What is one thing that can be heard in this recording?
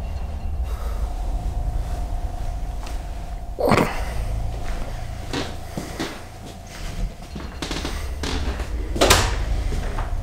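A towel rustles against clothing close to the microphone.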